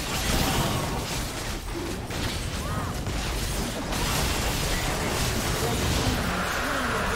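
Fantasy battle sound effects crackle and whoosh.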